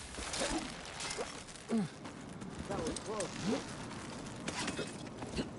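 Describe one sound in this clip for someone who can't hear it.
Hands grip and creak against a rope during a climb.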